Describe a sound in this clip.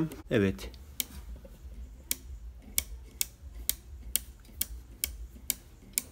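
A spinning wheel clicks at a steady, regular pace.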